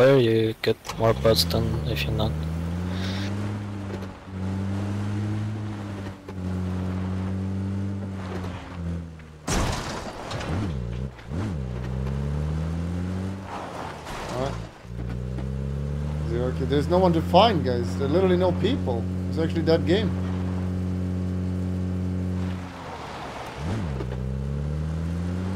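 A vehicle engine hums and revs up and down as it drives.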